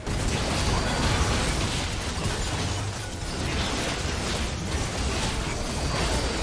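Heavy impacts thud as creatures clash in a fight.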